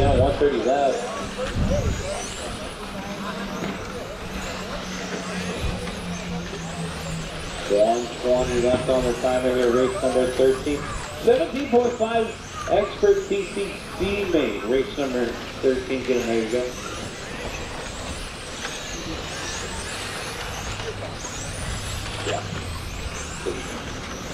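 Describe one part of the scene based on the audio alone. Small electric model cars whine as they speed around and rev up and down.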